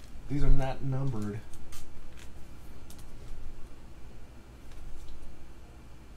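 A plastic sleeve crinkles as a card slides into it.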